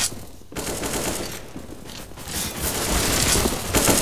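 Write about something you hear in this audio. A smoke grenade hisses steadily.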